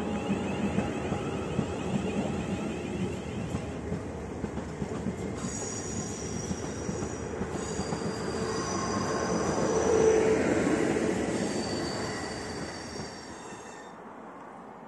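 A passenger train rumbles past close by, its wheels clattering over the rails, then fades away.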